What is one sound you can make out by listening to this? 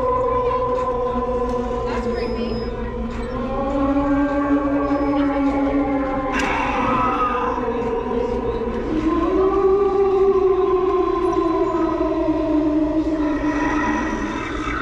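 A ghostly decoration plays eerie, wavering moaning tones.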